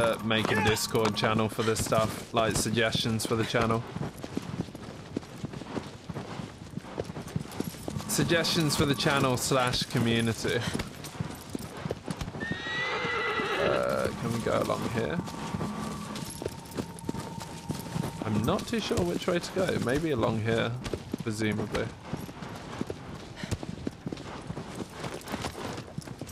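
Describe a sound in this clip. Horse hooves gallop over grass.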